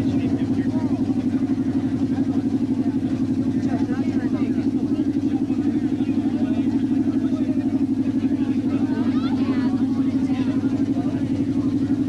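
Several men talk casually nearby, outdoors.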